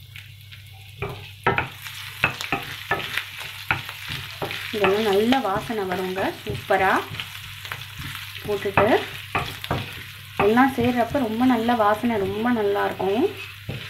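A wooden spoon scrapes and taps against a pan.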